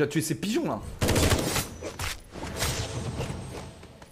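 Video game combat effects clash and burst.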